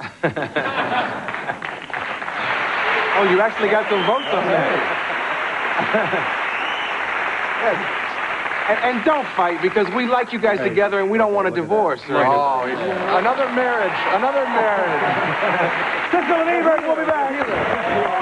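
Men laugh heartily.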